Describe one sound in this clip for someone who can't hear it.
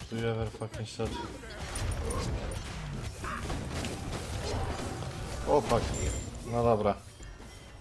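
Blows and impacts thud rapidly in a fight.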